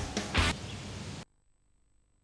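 A short electronic game jingle plays, then cuts off into silence.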